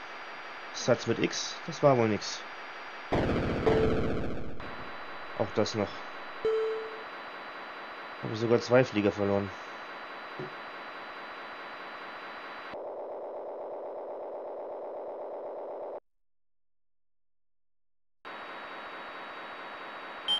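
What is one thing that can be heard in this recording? A retro computer game plays a steady buzzing electronic drone.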